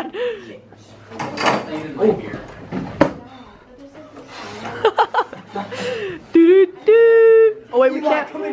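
Metal chair legs clatter and knock together.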